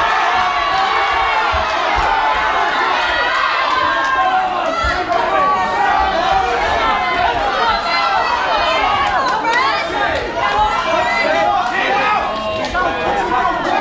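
A crowd of men and women chatters and shouts loudly in an echoing hall.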